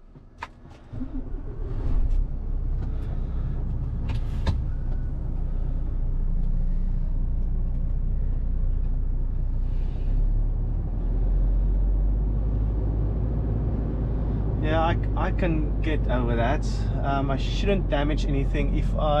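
A truck's diesel engine rumbles steadily as the truck drives off slowly.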